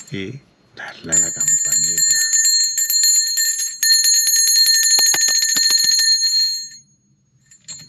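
A small hand bell rings steadily.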